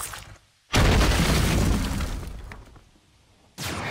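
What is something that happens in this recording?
A loud explosion booms and rumbles, then fades.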